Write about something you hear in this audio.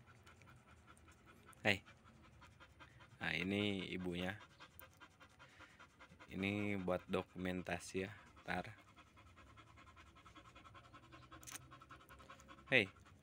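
A dog pants rapidly.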